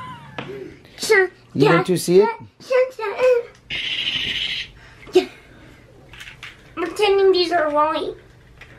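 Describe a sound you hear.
A young boy talks excitedly, close by.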